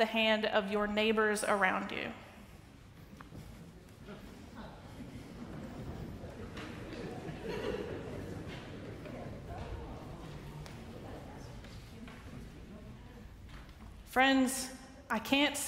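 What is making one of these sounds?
A choir sings in a large echoing hall.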